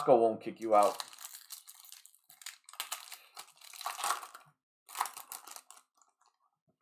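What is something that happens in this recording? A plastic wrapper crinkles and tears as it is pulled open.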